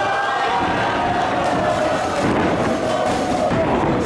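A wrestler's body thuds onto the ring mat.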